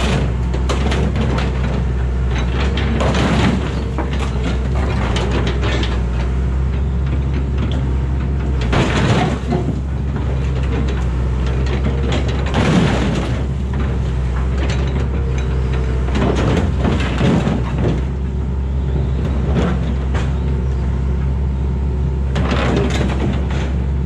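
Metal scrapes and clanks as an excavator bucket crushes a scrap car.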